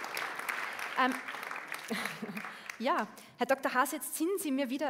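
A woman speaks through a microphone in a large hall.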